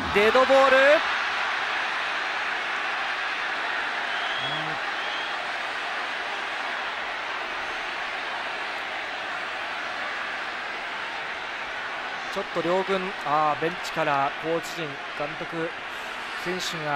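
A large crowd cheers and roars in a big stadium.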